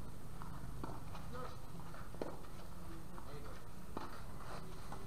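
Tennis balls are struck with rackets in sharp pops.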